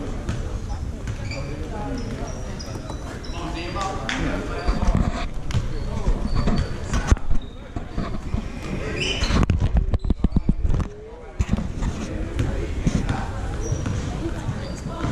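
Spectators murmur and call out in the stands.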